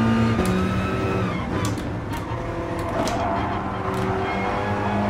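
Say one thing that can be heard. A racing car engine roars at high revs, its pitch dropping as the car brakes and shifts down.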